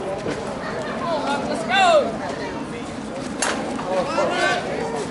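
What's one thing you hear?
Women chatter and call out across an open outdoor field.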